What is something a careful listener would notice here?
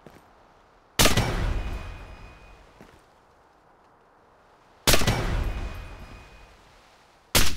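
A sniper rifle fires loud shots that echo away.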